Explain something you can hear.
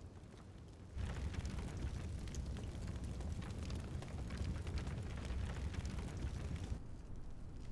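A fire crackles and roars in a brazier.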